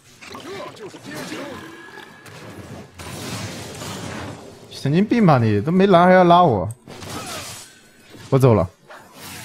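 Fantasy battle sound effects of spells and blows crackle and whoosh.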